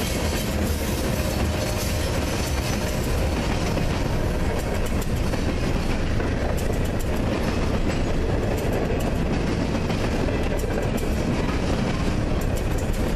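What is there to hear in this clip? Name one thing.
A freight train rolls past close by with a steady rumble.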